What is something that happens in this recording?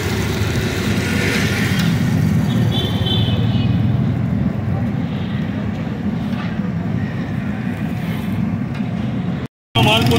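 Oil sizzles and bubbles steadily in a deep pan.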